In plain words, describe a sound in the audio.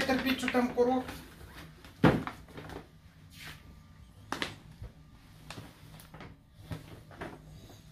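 A paper gift bag rustles as a man handles it.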